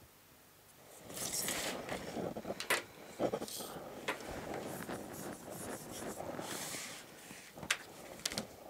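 Stiff paper rustles and slides on a table.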